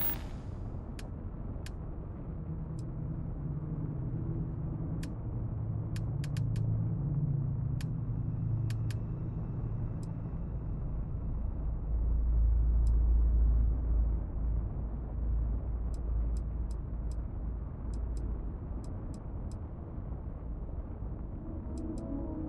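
Short menu clicks tick now and then.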